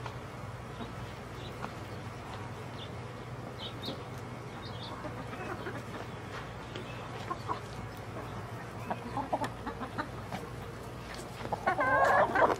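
Hens cluck softly nearby.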